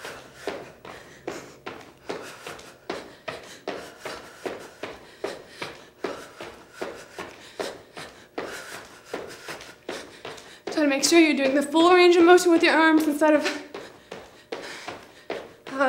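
Feet land in a quick, steady rhythm of jumps.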